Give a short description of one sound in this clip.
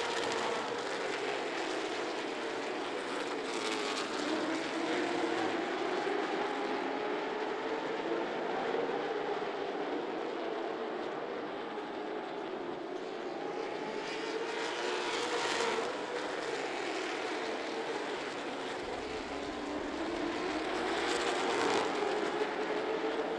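Race car engines roar steadily, rising and falling in pitch as the cars circle the track.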